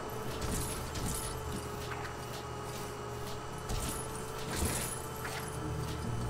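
Studs jingle as they are collected.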